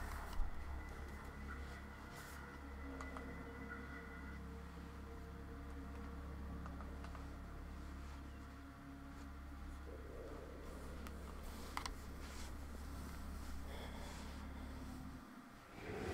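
Game music plays steadily with a low hum.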